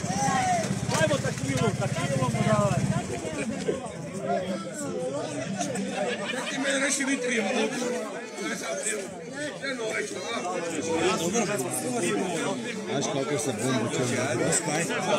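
A crowd of men and women talk and call out lively outdoors, close by.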